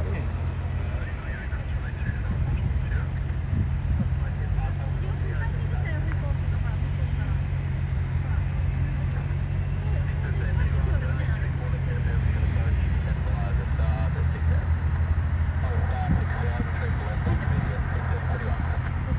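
Jet engines rumble steadily in the open air.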